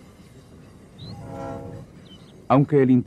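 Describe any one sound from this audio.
A train horn sounds in the distance.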